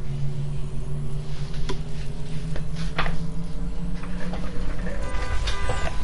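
A machine hums steadily, then stops.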